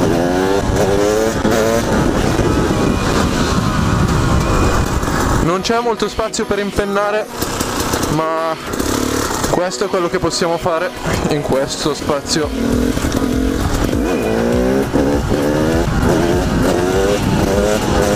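Wind buffets the microphone as the motorcycle rides.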